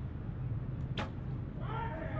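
A bowstring snaps as an arrow is shot.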